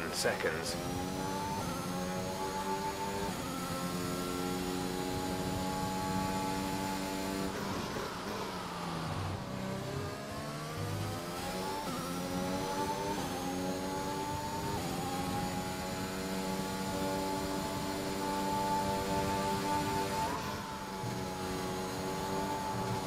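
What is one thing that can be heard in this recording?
A racing car engine screams at high revs, shifting up through gears and dropping down for a corner.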